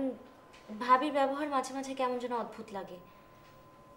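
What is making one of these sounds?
A young woman speaks tearfully and close by.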